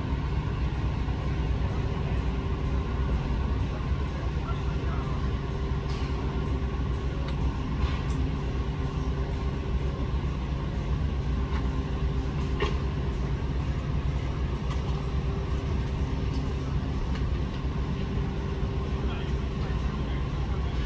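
A large truck engine idles with a steady low rumble nearby.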